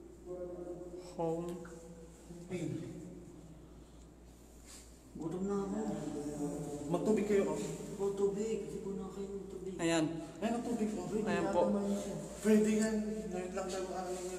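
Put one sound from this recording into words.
A young man talks close to a phone microphone.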